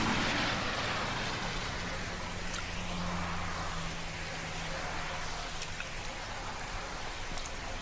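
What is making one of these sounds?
Bare feet pad softly on wet pavement.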